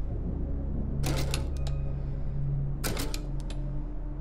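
Metal dials click sharply as they are turned.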